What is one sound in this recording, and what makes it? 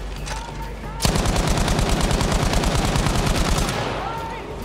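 A heavy gun fires a rapid, rattling burst.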